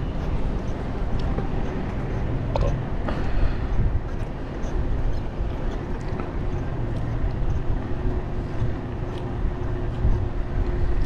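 Tyres roll on smooth asphalt.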